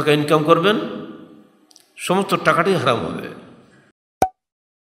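An elderly man speaks calmly into a microphone, with a reverberant echo.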